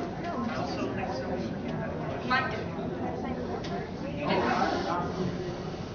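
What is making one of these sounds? A crowd of people murmurs and chatters in a large room.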